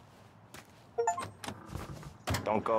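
A car door clicks open and shuts.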